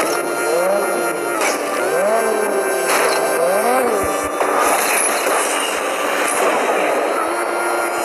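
A sports car engine roars as it accelerates in a racing game.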